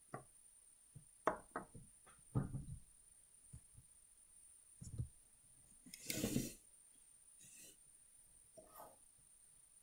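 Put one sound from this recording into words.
Small plastic bricks click and rattle as a hand handles them.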